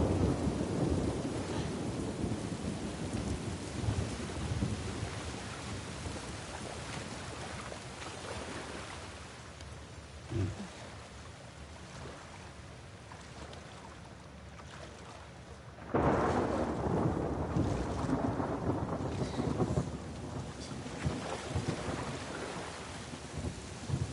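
A man talks into a microphone at close range.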